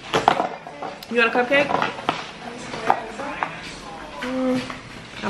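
A young child speaks in a high voice.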